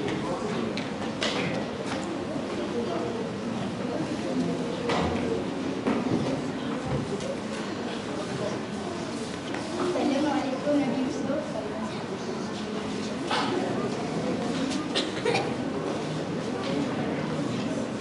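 A young man speaks loudly on a stage in a large echoing hall.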